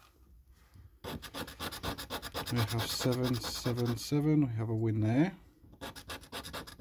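A coin scratches rapidly across a scratch card.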